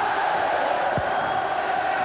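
A football is kicked with a thud.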